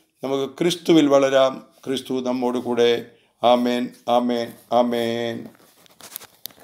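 An elderly man speaks calmly and clearly into a microphone.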